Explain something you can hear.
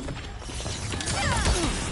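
Fire bursts with a crackling whoosh.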